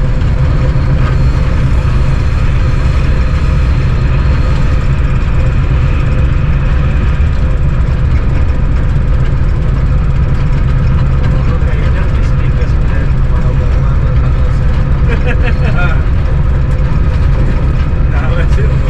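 A locomotive engine rumbles steadily up close.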